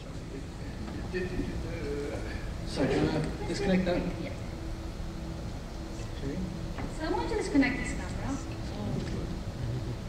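A man talks into a microphone in a large echoing hall.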